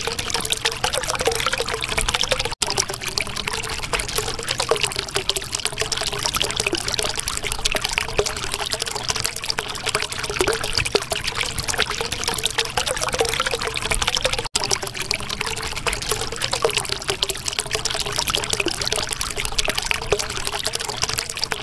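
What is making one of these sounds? Water bubbles and gurgles steadily.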